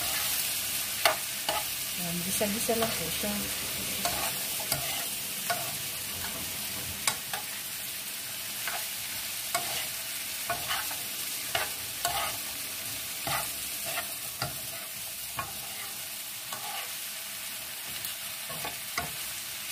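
A utensil clicks and scrapes against a frying pan as vegetables are stirred.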